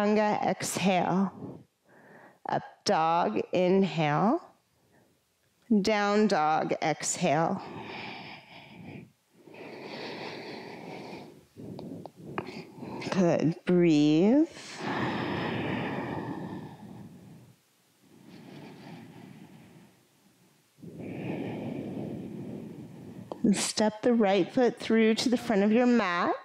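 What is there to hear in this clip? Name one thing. A woman speaks calmly and closely through a microphone.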